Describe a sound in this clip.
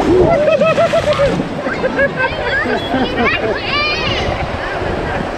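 A man laughs loudly close by.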